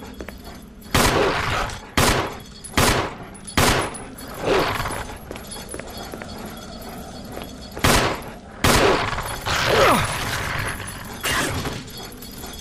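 Gunshots ring out loudly, one after another.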